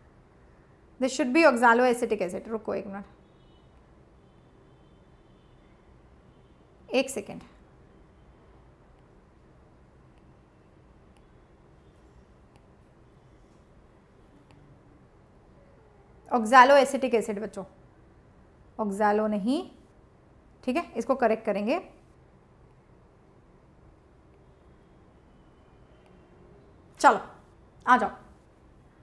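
A young woman speaks calmly into a close microphone, in short bursts with pauses.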